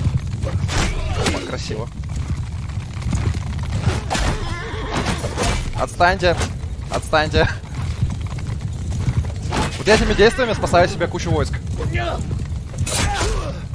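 Swords clash and strike in combat.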